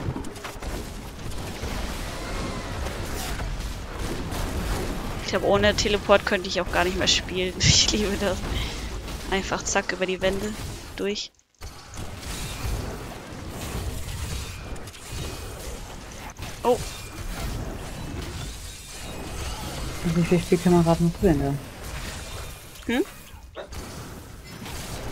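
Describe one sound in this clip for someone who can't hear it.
Magic blasts and clashing combat effects crackle and boom.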